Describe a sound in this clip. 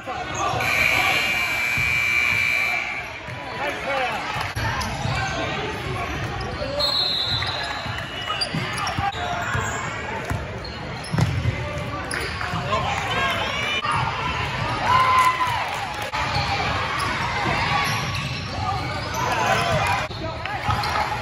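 Sneakers squeak sharply on a hardwood floor in an echoing gym.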